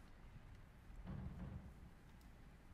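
An orchestra begins to play softly in a large, echoing hall.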